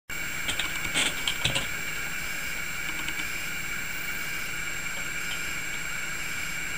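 An old computer monitor gives off a steady high-pitched whine.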